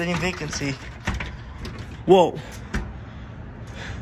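A glass door rattles as a hand pulls at its handle.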